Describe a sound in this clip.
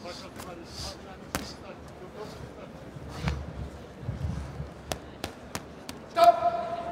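Gloves thud as boxers throw punches.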